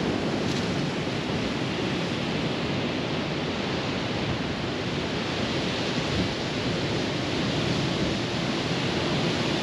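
Ocean waves crash and roar steadily on a reef offshore.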